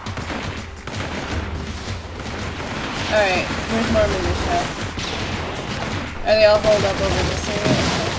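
Footsteps patter quickly across roof tiles.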